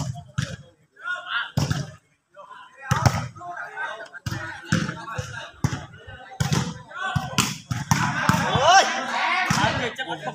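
A ball thumps as players kick it.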